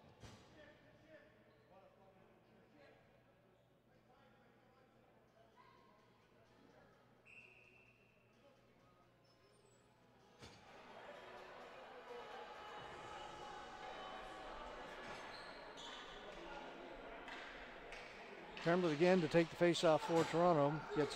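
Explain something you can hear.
A crowd of spectators murmurs and chatters in a large echoing arena.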